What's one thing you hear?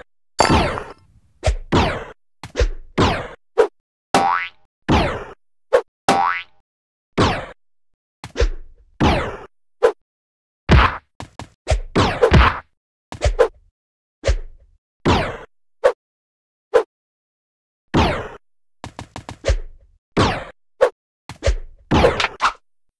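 A quick falling whoosh sounds each time a game character jumps.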